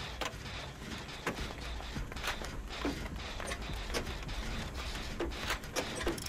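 Machinery clanks and rattles as it is worked on.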